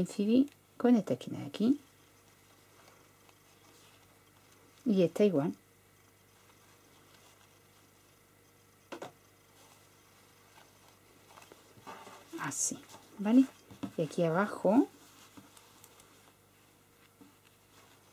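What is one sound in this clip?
Cloth rustles softly as hands fold and pin it.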